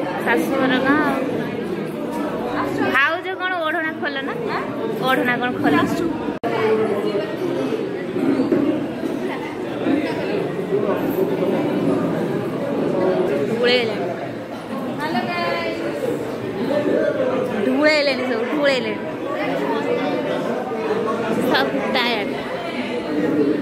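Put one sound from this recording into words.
A crowd of people chatters in a busy room.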